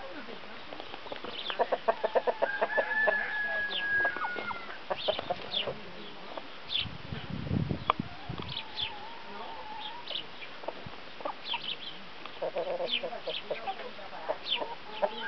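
Hens chirp in short, high calls.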